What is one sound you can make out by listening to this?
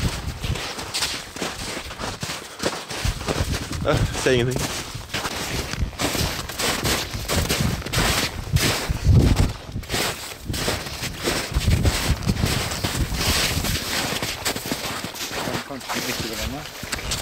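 Boots crunch through snow at a steady pace.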